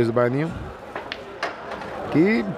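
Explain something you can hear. Billiard balls click together.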